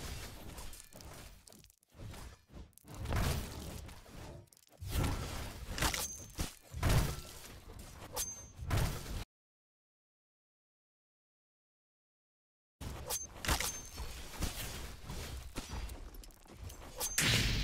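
A sword swooshes through the air again and again.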